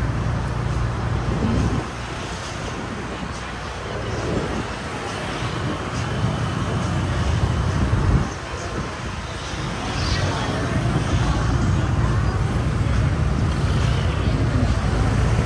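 Cars drive by with a low rumble.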